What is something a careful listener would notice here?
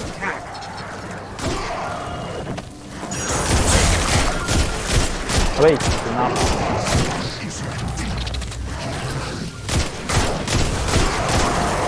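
Gunshots fire in rapid bursts in a video game.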